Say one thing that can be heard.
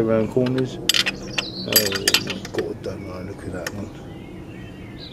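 A ratchet wrench clicks on a metal fitting.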